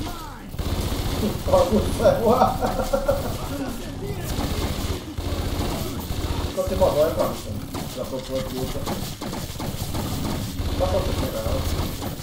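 Rapid gunfire rattles from a small machine gun.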